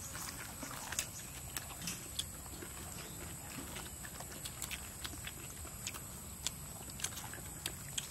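A young woman chews and crunches crusty bread close by.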